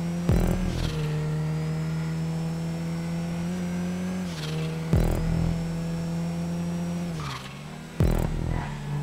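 A car engine hums steadily, its pitch shifting slightly as the car speeds up and slows down.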